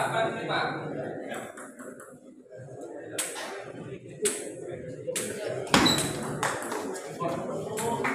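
A ping pong ball clicks back and forth on a table and paddles.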